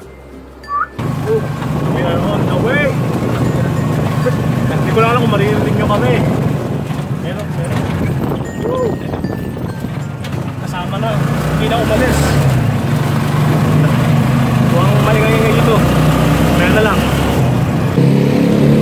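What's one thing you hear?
An engine rumbles steadily inside a moving vehicle.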